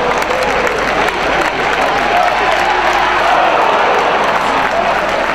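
A large crowd cheers and chants loudly in an echoing arena.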